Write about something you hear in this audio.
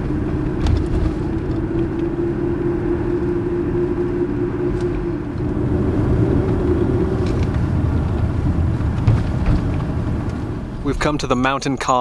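A car engine hums and tyres rumble on the road from inside the car.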